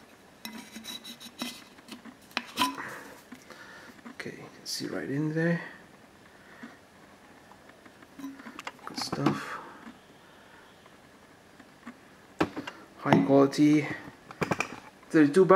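A metal bottle clinks and taps as it is handled.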